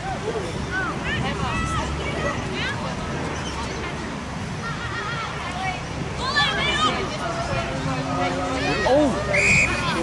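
Young women shout and call out to each other across an open field.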